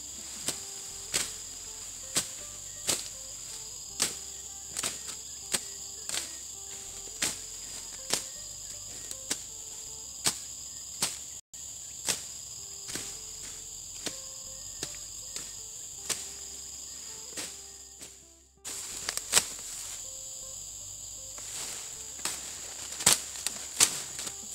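A machete chops through brush in sharp strokes.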